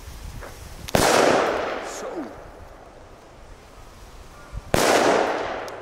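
A firecracker explodes with a sharp bang that echoes outdoors.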